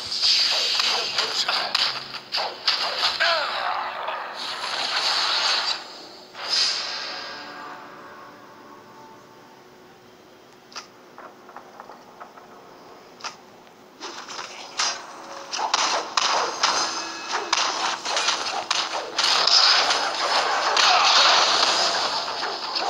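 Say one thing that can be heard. Blades clash and strike in quick, busy bursts of combat.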